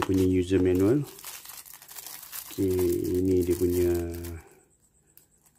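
Plastic wrapping crinkles.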